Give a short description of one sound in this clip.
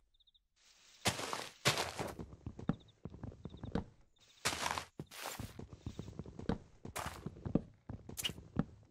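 Leaves crunch and rustle in short bursts as they are broken.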